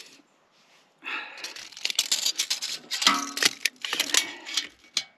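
A metal tape measure rattles and clicks as it is pulled out.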